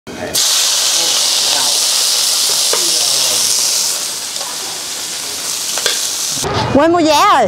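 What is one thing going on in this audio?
Food sizzles loudly as it fries in a hot pan.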